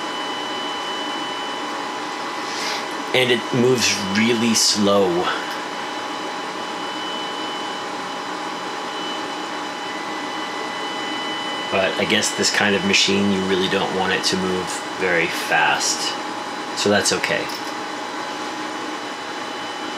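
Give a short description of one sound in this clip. A resin 3D printer hums steadily.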